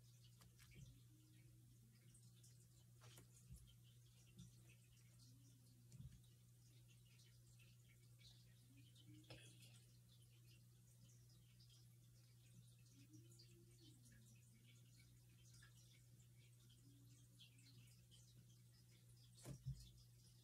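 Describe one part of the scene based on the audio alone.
Fingers rustle and crinkle soft plastic close by.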